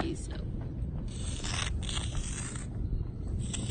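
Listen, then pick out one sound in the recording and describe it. Chalk scrapes across rough asphalt.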